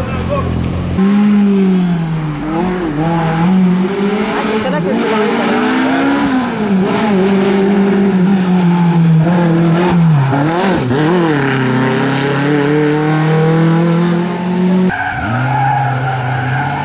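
A racing car engine roars loudly, revving up and down as the car speeds through bends.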